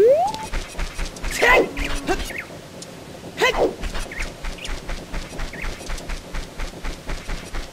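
Quick footsteps patter steadily on grass and dirt.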